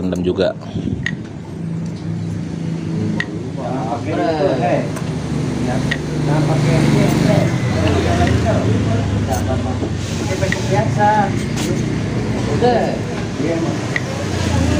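Metal clutch plates clink and scrape together as they are handled.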